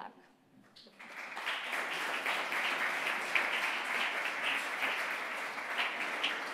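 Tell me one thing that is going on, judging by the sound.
An audience applauds steadily.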